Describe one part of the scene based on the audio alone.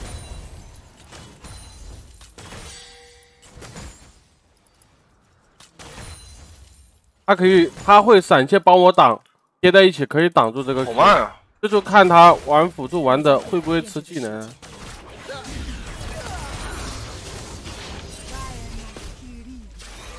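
Game sound effects clash and ring out.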